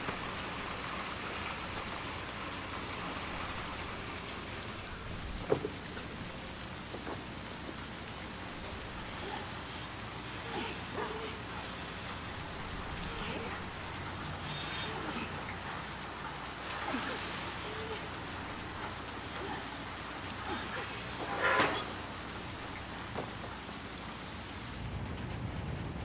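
Rain falls steadily and patters all around.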